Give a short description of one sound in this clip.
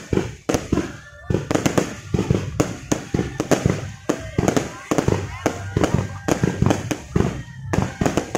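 Rockets whistle and hiss as they shoot upward.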